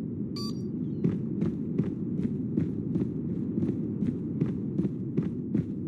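Footsteps tap quickly on pavement.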